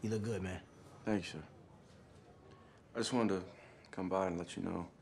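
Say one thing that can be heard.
A young man answers quietly and politely.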